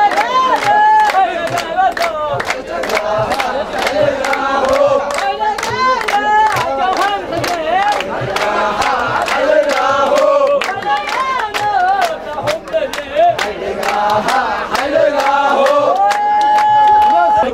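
People clap their hands in a steady rhythm.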